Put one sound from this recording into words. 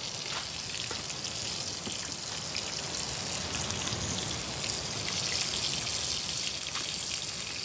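Metal pots and lids clink and scrape.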